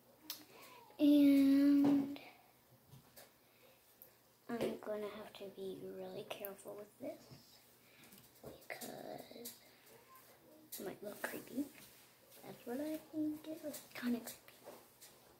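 A young girl talks close to the microphone.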